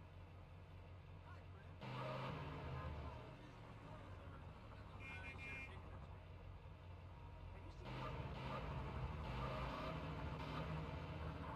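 A car engine revs and rumbles as a car drives along a street.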